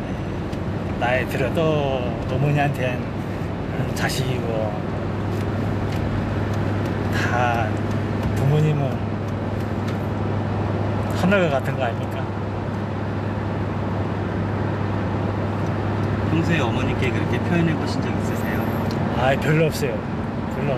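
A middle-aged man speaks calmly and warmly, close by.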